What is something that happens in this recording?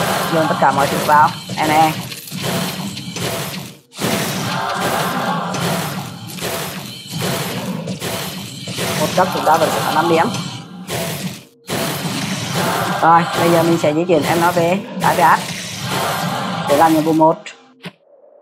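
Fiery spell blasts crackle and boom in quick succession.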